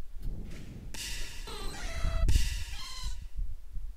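A game creature lets out a harsh cry.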